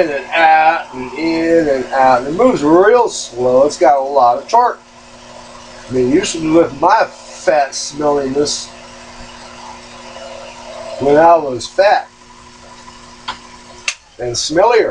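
A small lathe motor hums steadily, then stops.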